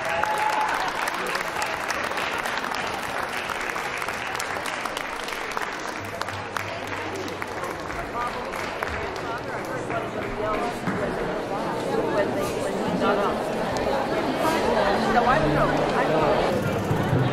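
A large crowd of men and women chatters and murmurs in an echoing hall.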